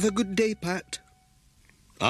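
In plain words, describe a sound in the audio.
An elderly woman speaks cheerfully.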